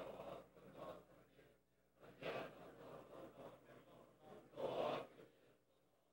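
A small child fusses and whimpers close by.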